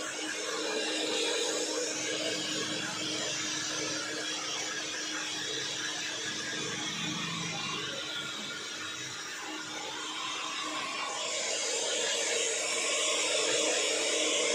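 A hair dryer blows with a steady, loud whir.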